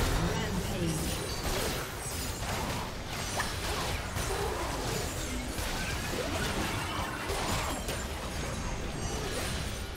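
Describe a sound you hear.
Game spell effects whoosh and blows clash in a fast, busy fight.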